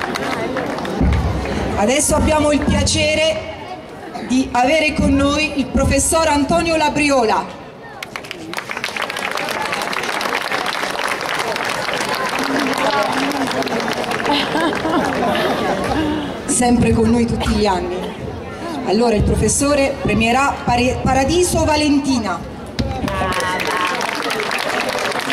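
A young woman speaks into a microphone over loudspeakers.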